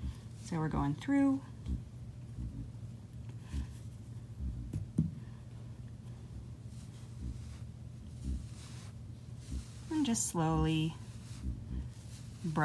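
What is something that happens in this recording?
A hand softly strokes thick fur with a faint rustle.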